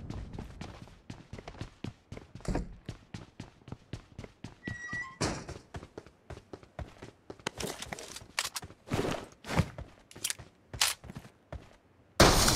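Quick footsteps patter steadily on hard ground.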